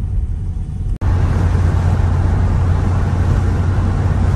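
Wind rushes in loudly through an open car window.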